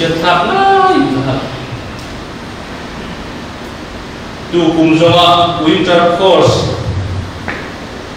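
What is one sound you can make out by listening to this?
A middle-aged man gives a speech into a microphone, speaking calmly with pauses.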